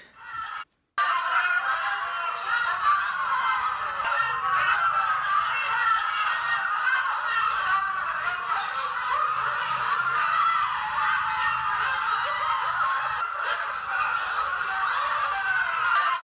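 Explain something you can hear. A crowd cheers and murmurs through a small phone speaker.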